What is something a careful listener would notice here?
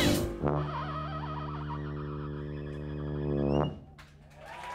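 A live band holds a loud final chord.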